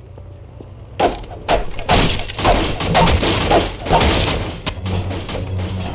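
A crowbar smashes repeatedly against wooden boards.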